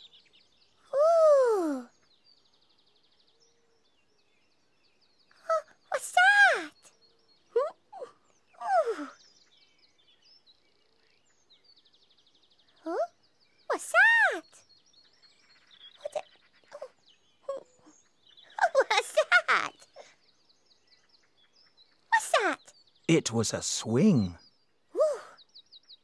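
A character sings and squeals in a high, playful voice, heard close.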